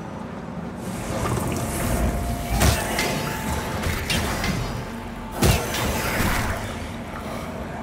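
A sword clashes and slashes against a creature in a fight.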